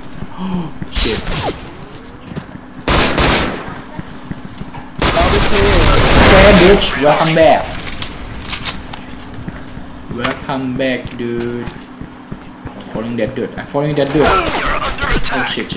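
Automatic gunfire rattles in short bursts.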